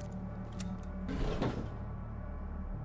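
Elevator doors slide open with a whoosh.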